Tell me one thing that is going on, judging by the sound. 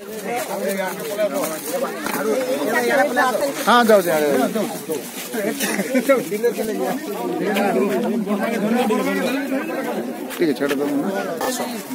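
A crowd of men and women talk over one another nearby, outdoors.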